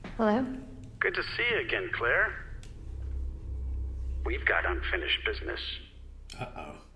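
A man speaks calmly through a telephone receiver.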